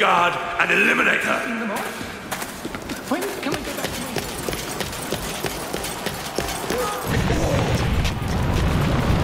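Heavy footsteps crunch over stone and rubble.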